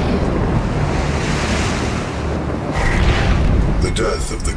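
A humming energy burst whooshes.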